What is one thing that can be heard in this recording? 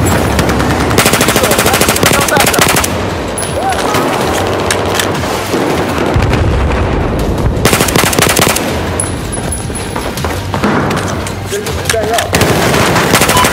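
A rifle fires rapid bursts of gunshots close by.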